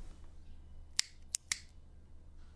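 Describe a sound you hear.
A lighter clicks and flares.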